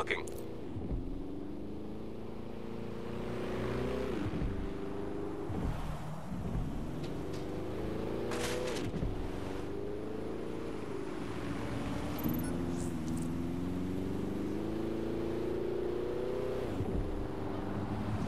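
A car engine revs and shifts gears as the car speeds along.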